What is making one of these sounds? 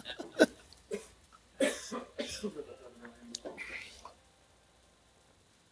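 A man sips a drink.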